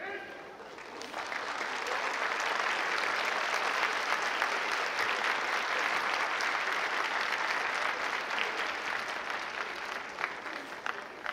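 An audience applauds in a large echoing hall, swelling and then fading away.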